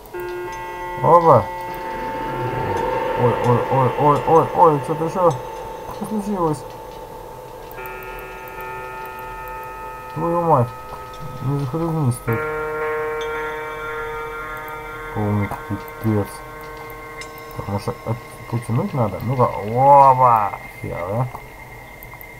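A man's voice moans and wails in short bursts.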